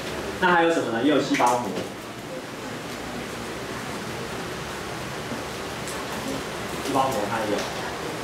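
A young man speaks through a microphone.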